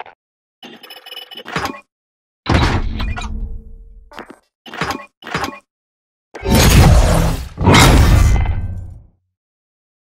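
Short electronic chimes and whooshes play in quick bursts, then fall silent.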